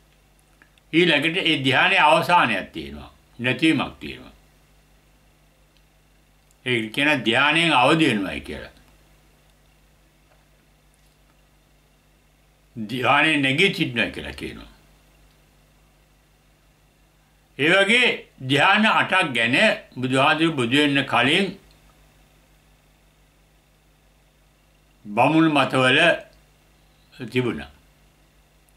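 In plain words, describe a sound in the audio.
An elderly man speaks calmly and slowly into a nearby microphone, with long pauses.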